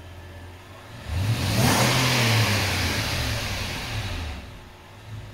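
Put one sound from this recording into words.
A car engine revs up loudly and then drops back.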